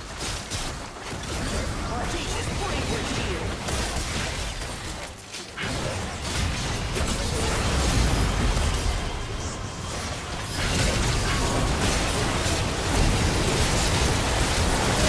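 Spells and blasts crash and whoosh in a game fight.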